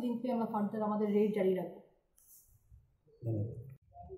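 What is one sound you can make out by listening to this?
A woman speaks calmly and close to the microphone.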